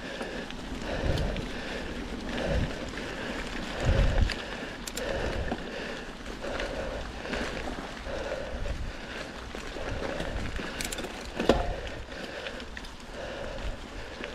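A bicycle rattles and thumps over bumps in the trail.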